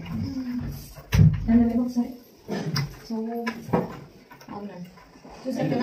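A wooden cupboard door knocks as it swings open and shut.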